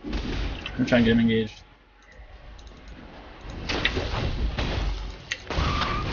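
Game sound effects of spells and hits play.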